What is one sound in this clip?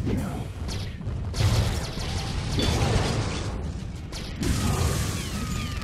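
A large chunk of concrete crashes and smashes.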